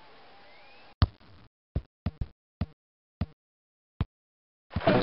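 A ball is kicked with short thumps.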